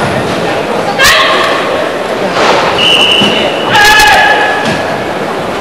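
A young man gives sharp, loud shouts in a large echoing hall.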